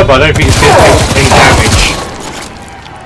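Gunfire crackles and blasts in rapid bursts.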